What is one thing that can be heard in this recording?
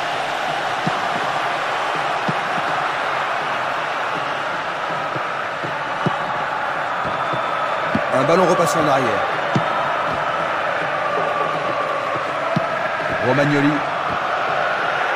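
A football is kicked on grass.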